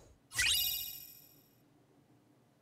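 A game chimes brightly as an item is obtained.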